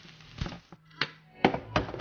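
A bottle is set down on a hard counter with a knock.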